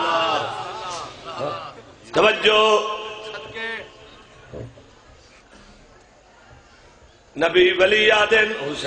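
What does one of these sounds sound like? A man speaks with passion into a microphone, his voice loud and amplified, in bursts broken by pauses.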